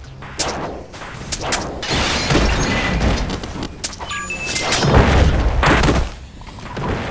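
Punches land with sharp thuds and smacks.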